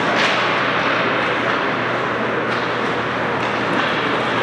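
Hockey sticks knock against pucks with sharp clacks.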